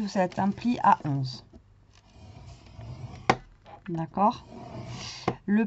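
A stylus scrapes along paper.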